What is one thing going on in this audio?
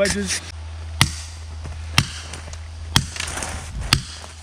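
An axe strikes a tree trunk with sharp, regular chops.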